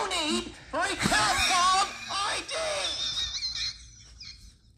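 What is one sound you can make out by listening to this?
A man shouts angrily into a headset microphone.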